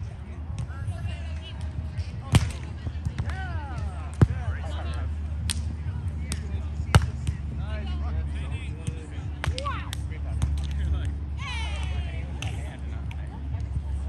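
Young men and women shout and call out during play outdoors.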